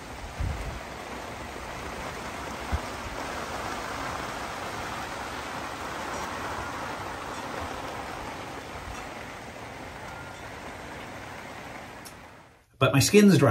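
Hail patters steadily on a patio and lawn outdoors.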